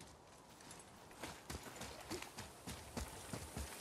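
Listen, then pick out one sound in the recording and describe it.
Heavy footsteps splash through shallow water.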